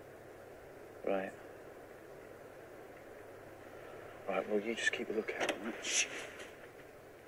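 An older man speaks in a low voice, close by.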